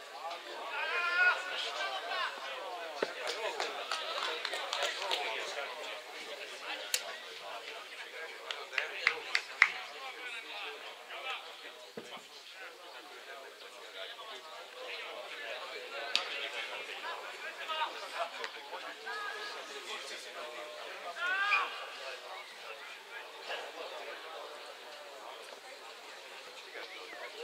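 Young men shout to each other from a distance across an open outdoor field.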